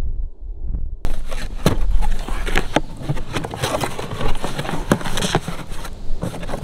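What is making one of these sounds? Cardboard rustles and scrapes as a box is torn open.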